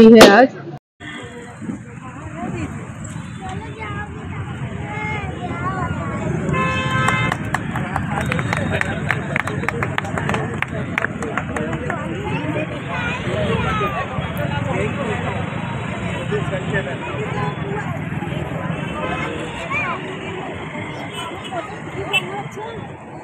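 Men and women talk and chatter close by in a small crowd.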